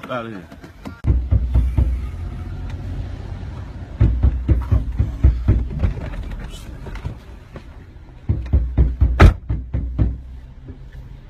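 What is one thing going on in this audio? A second young man talks loudly inside a car.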